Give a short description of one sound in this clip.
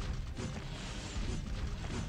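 Small explosions boom and crackle.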